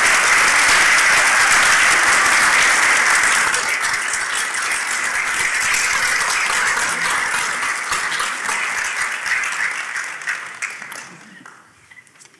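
A large choir sings in an echoing hall, then fades away.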